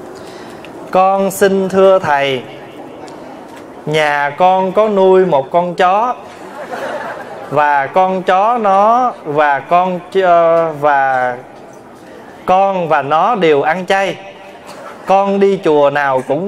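A man chants in a slow, wavering voice through a microphone, echoing in a large hall.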